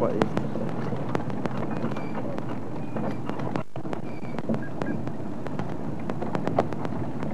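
A vehicle rattles and bumps over uneven ground.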